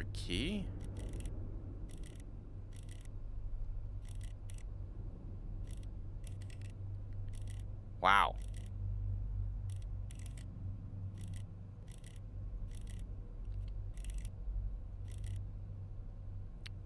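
The dials of a combination lock click as they turn.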